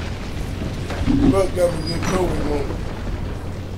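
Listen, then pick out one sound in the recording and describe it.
A man speaks casually into a microphone.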